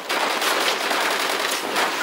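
A fiery explosion roars close by.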